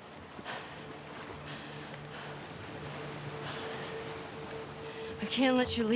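Water splashes as a man wades through the shallows.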